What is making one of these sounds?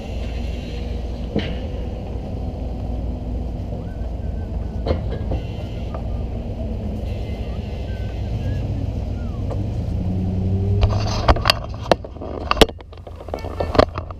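A hockey net scrapes across ice.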